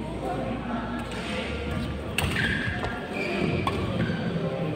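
Badminton rackets smack a shuttlecock back and forth in an echoing hall.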